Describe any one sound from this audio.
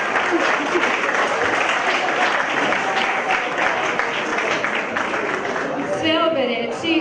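An audience cheers and applauds loudly in a room.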